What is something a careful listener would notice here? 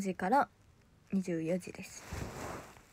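A young woman speaks softly, close to a microphone.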